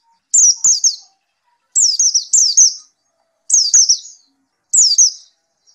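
A small bird sings in short bursts of quick, high, falling chirps.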